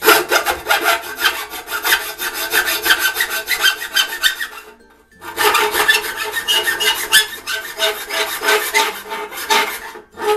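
Rapid hammer blows strike a metal chisel with a sharp metallic ring.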